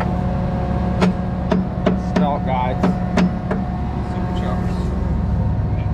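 A man speaks outdoors close by.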